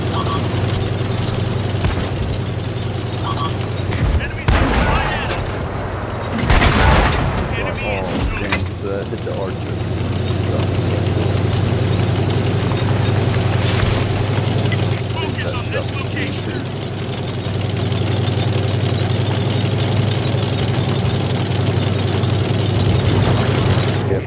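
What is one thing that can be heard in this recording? A heavy tank engine rumbles steadily throughout.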